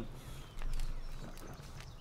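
A campfire crackles softly.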